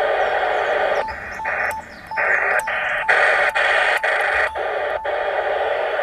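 A radio's tuning knob clicks as it is turned.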